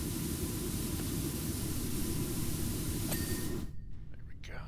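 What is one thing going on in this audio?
A pressure washer sprays water with a loud, steady hiss, then stops.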